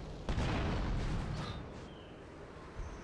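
A car explodes with a loud roaring blast.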